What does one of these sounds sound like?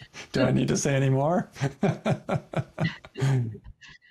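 A middle-aged man laughs softly over an online call.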